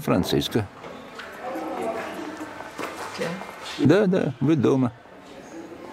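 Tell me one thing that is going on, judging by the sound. An elderly man speaks quietly and closely.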